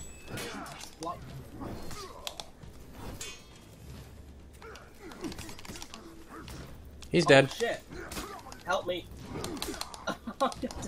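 Warriors grunt and shout as they strike.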